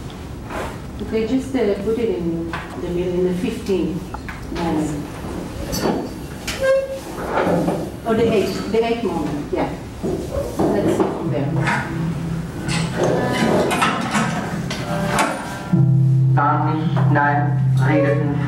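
A woman speaks calmly and at ease, a few steps away.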